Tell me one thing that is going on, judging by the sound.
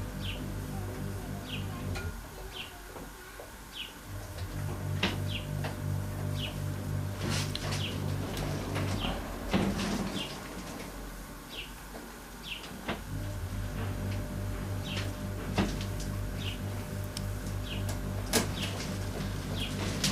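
Small metal tools click and tap on a workbench.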